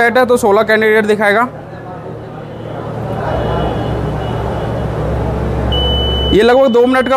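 An electronic voting machine gives out a loud, long beep.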